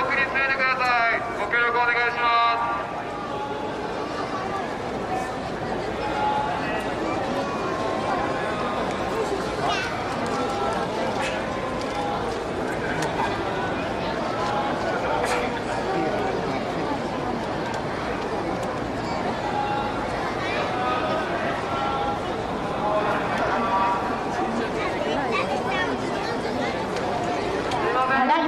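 A large crowd murmurs and chatters outdoors all around.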